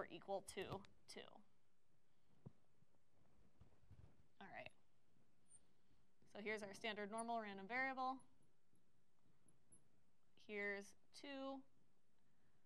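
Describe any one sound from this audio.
A young woman speaks calmly and clearly into a close microphone, in short phrases with pauses.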